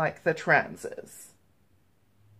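A woman speaks briefly close to a microphone.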